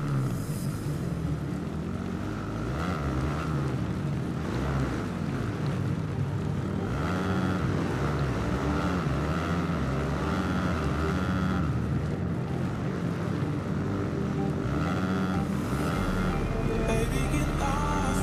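Dirt bike engines whine loudly, revving up and down.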